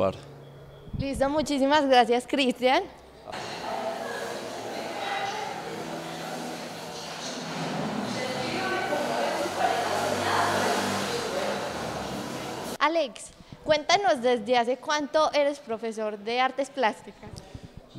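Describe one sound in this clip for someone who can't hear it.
A young woman speaks brightly into a microphone.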